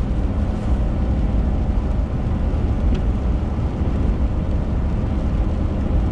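A windshield wiper sweeps across the glass once.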